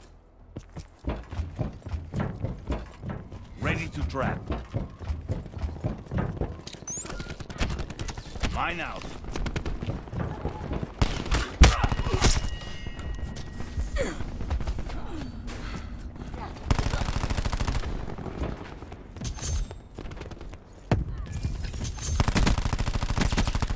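Footsteps clatter quickly on a metal walkway and hard ground.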